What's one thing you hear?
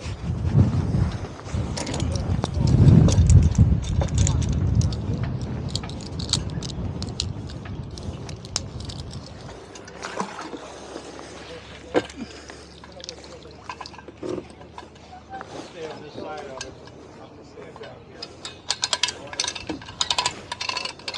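Water sloshes against a sinking boat.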